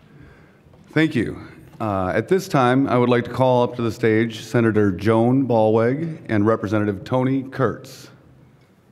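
A middle-aged man speaks calmly into a microphone over loudspeakers in a large hall.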